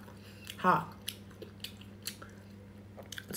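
A young woman chews a crisp fruit close to a microphone.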